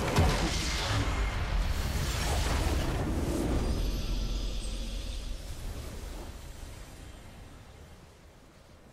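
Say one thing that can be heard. A triumphant fanfare swells and fades.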